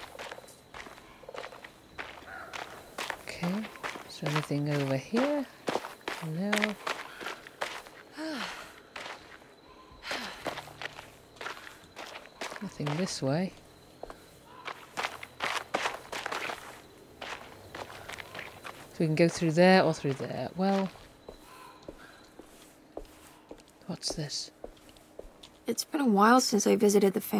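Footsteps crunch on gravel and stone.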